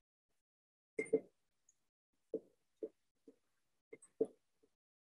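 A stick knocks lightly against a glass jar.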